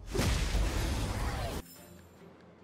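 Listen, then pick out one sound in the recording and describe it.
A sword strike hits with a loud crash.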